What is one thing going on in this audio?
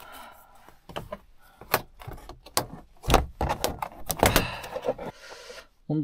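A stiff panel taps and scrapes against a window.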